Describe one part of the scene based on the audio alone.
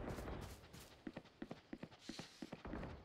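Footsteps patter quickly on hard ground.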